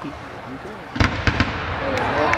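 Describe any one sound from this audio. A firework bursts with a loud bang and crackles.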